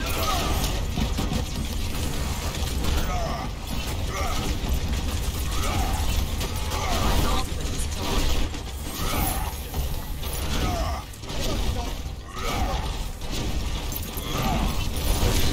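Heavy gunfire rattles in rapid bursts.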